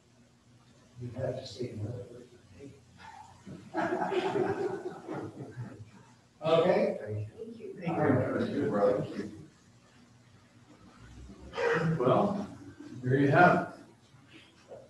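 An older man speaks with animation through a microphone.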